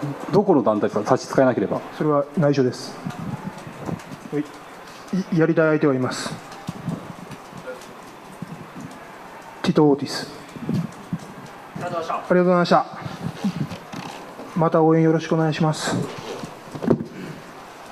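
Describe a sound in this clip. A young man speaks calmly into a microphone, close by, in short phrases with pauses.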